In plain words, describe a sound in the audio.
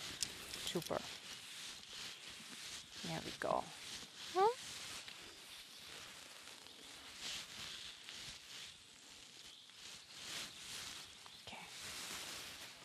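A young woman speaks softly and calmly nearby.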